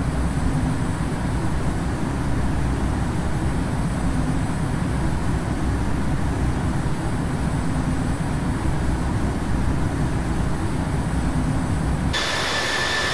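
Jet engines rumble low and steady, muffled as if from inside an aircraft.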